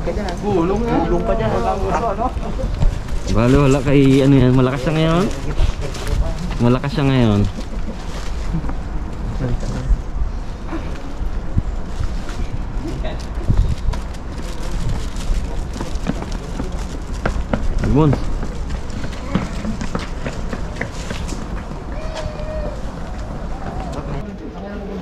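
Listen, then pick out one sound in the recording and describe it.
Footsteps scuff on stone steps.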